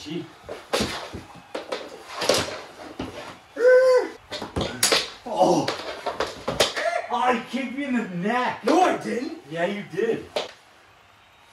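Hockey sticks clack and scrape on a wooden floor.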